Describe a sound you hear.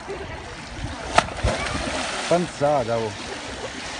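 A boy dives into a pool with a splash.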